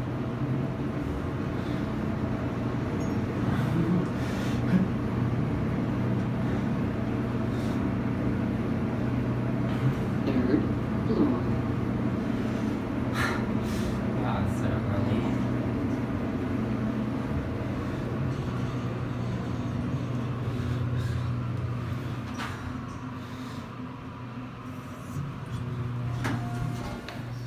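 An elevator car hums steadily as it moves.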